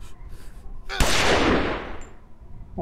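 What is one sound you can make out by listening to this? A revolver fires a single shot.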